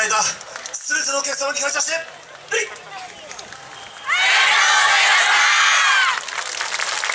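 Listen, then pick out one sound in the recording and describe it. A group of young dancers shout a long call together, loud and outdoors.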